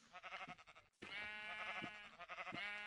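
A sheep bleats.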